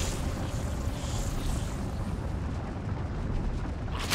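Creatures clash and screech in a fight.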